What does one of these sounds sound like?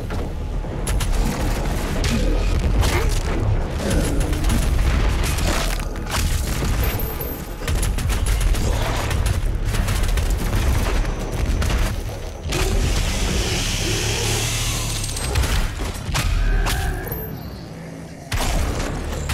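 Guns fire in rapid, loud blasts.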